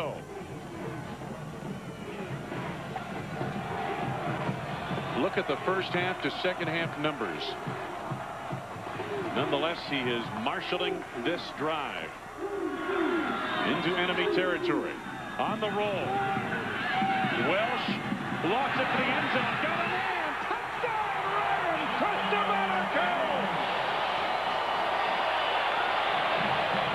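A large crowd cheers and roars in a big open stadium.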